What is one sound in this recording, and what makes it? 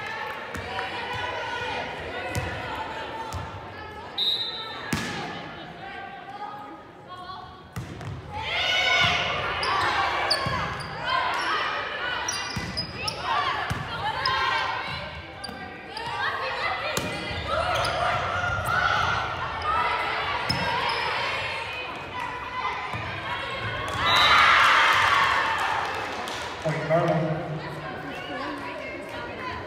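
Young women players call out and shout across an echoing gym.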